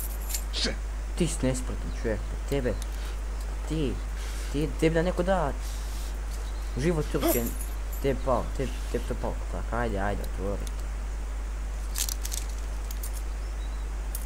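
Metal handcuffs clink and rattle.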